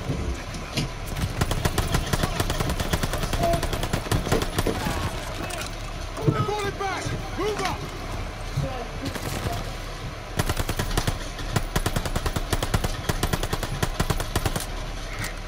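Rapid bursts of machine-gun fire crack loudly.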